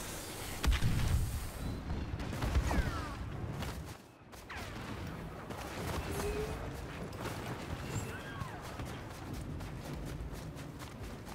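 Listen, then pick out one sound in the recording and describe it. Blaster shots zap and whine in quick bursts.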